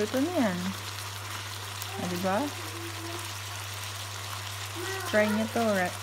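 Mussels sizzle softly in a hot pan.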